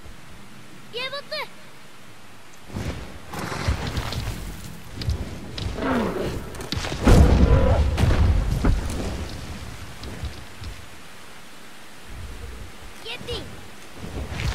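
A large creature gives high, warbling cries.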